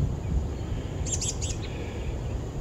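Goslings peep briefly.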